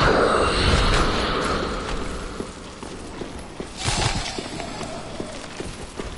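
Armoured footsteps clank on stone as a figure runs.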